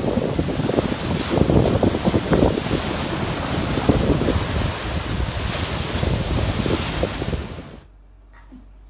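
Waves crash and surge loudly onto a shore.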